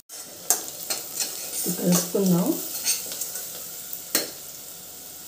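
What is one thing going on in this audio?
A metal spoon scrapes and clinks against a steel pot.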